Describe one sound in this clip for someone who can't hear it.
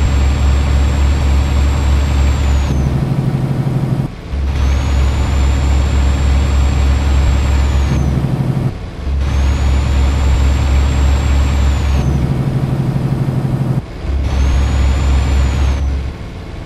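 A heavy truck engine drones steadily, rising and dipping in cycles.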